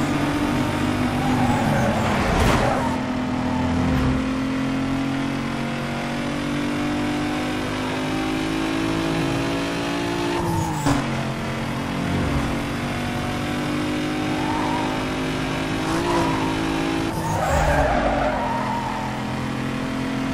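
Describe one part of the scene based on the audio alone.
Tyres hiss on the road at speed.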